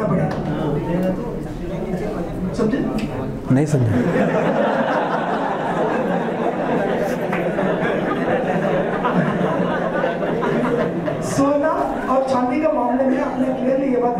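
A young man speaks into a microphone, heard through a loudspeaker in a room.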